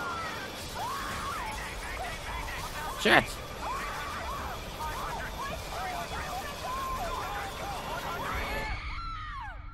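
A young woman gasps and cries out in fear.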